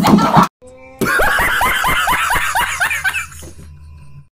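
A man laughs loudly and wildly.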